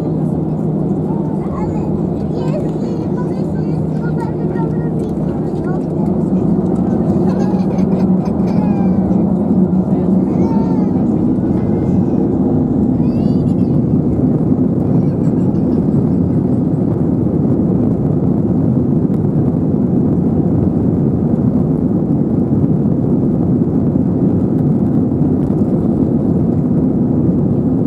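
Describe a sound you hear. Wheels rumble over a runway.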